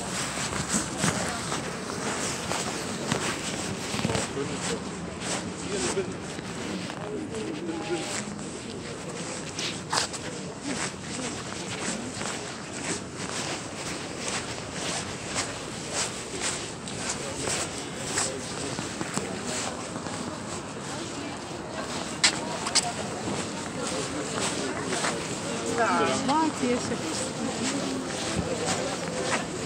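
A crowd of pedestrians murmurs nearby.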